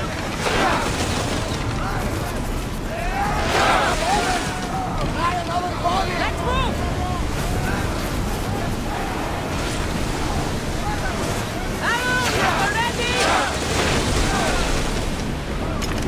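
Ships' hulls crash together with loud thuds.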